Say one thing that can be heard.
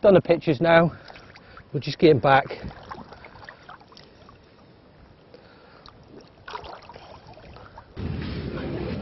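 Water splashes softly as hands move in shallow water.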